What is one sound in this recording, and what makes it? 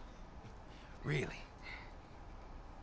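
A man asks a short question mockingly.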